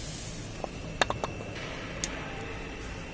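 A heavy metal part knocks and clinks as it is turned over by hand.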